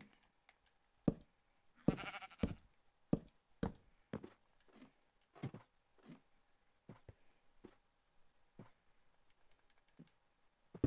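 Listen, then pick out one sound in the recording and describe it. Footsteps tap steadily on wooden ladder rungs while climbing.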